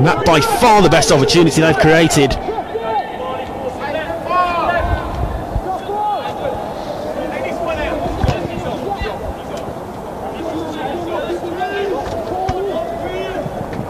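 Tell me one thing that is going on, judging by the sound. Young women shout and call to each other on an open pitch outdoors.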